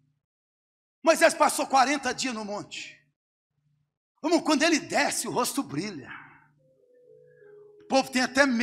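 A man preaches with animation through a microphone, in an echoing hall.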